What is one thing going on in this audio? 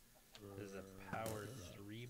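A block breaks with a short crunch.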